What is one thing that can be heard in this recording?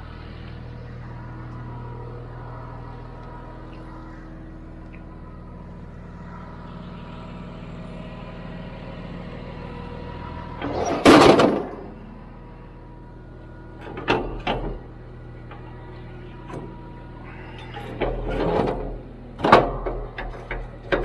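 A diesel engine idles steadily nearby.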